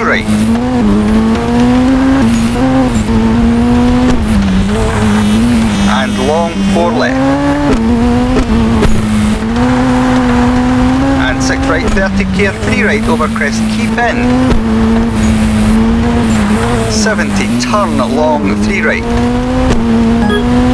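A rally car engine roars loudly, its pitch rising and dropping with gear changes.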